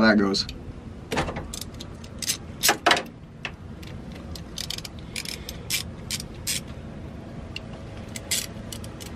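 A screwdriver clicks and scrapes against metal screws.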